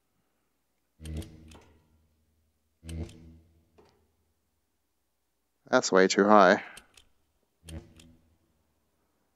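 A heavy button clunks as it is pressed.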